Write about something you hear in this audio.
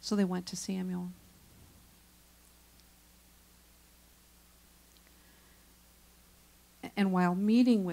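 A woman speaks with a sustained, sing-song voice through a microphone and loudspeakers.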